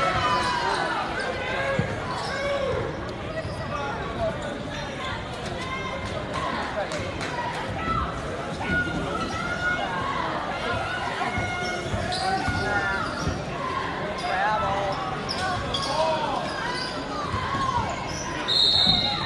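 A crowd chatters and calls out throughout a large echoing gym.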